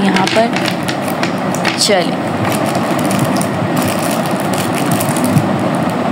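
Wax crayons clatter softly as a hand pushes them.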